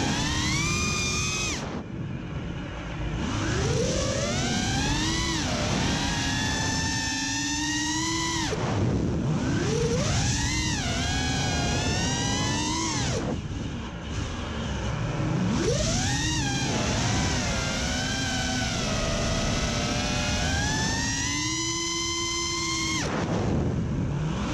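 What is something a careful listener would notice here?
Small drone motors whine loudly, their pitch rising and falling sharply as the drone swoops and turns.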